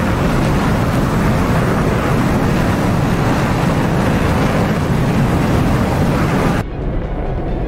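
A jet engine roars steadily as wind rushes past.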